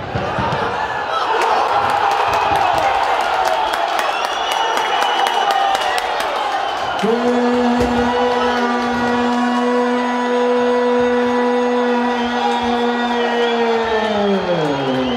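A crowd cheers and shouts after a goal.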